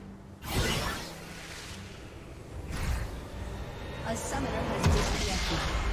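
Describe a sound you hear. Game spell effects whoosh and crackle in bursts.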